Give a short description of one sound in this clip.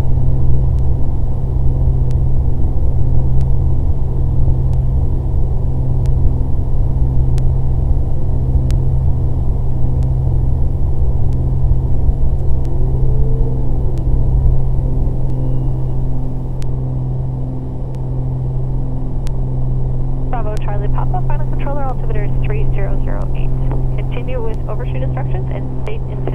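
A small plane's propeller engine drones loudly and steadily from inside the cabin.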